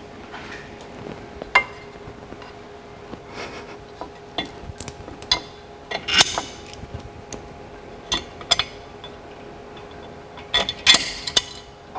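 A plastic panel clicks and rattles.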